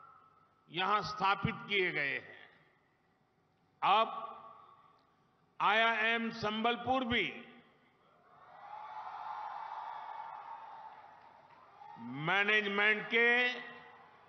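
An elderly man speaks forcefully into a microphone, echoing over loudspeakers outdoors.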